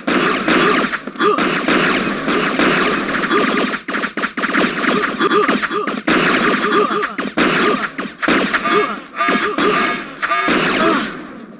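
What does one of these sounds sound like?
A video game energy weapon fires in sharp, crackling blasts.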